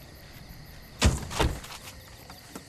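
A car door opens and thuds.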